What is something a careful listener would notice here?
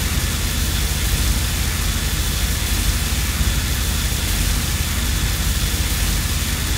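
A crackling electric beam weapon fires continuously.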